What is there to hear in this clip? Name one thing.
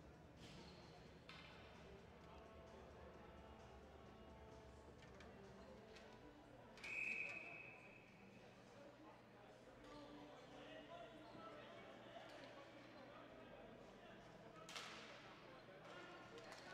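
Spectators murmur and chatter in a large echoing arena.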